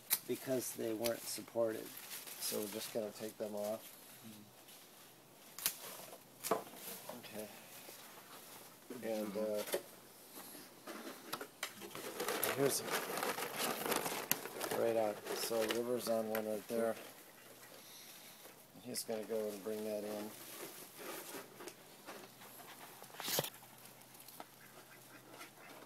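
Leaves rustle as plants are brushed and handled.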